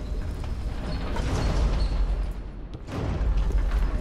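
Heavy armoured footsteps clank and thud on stone.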